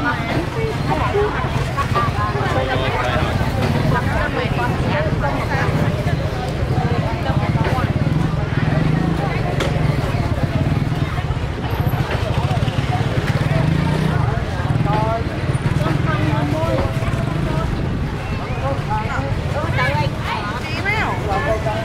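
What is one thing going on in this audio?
Plastic bags rustle and crinkle as vegetables are handled.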